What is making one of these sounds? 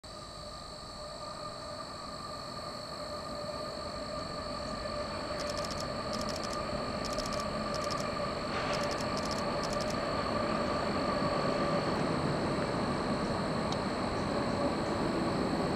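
Diesel locomotives rumble across a bridge, growing louder.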